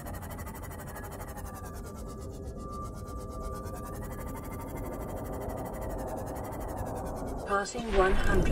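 A small submarine's engine hums steadily underwater.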